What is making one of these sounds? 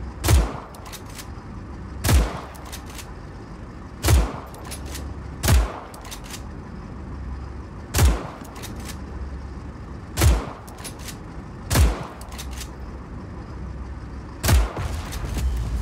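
Bullets strike metal with sharp pings.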